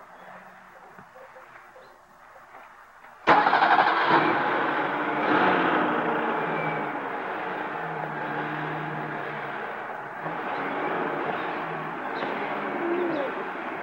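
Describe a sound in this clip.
A toddler babbles close by.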